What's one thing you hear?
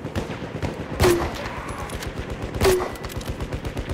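A field gun fires with loud booms.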